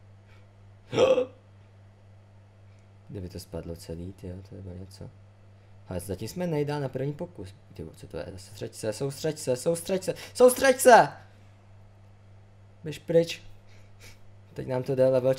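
A man talks casually into a nearby microphone, in short bursts.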